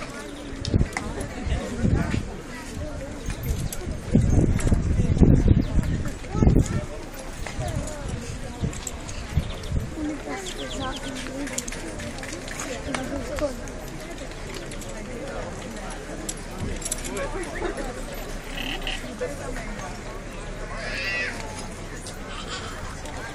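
A crowd of people chatter outdoors nearby.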